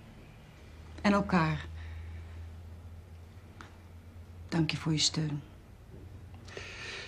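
A middle-aged woman speaks in a low, calm voice nearby.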